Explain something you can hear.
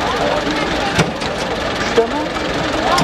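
A wooden trailer bed knocks and thuds as a heavy load is dragged off it.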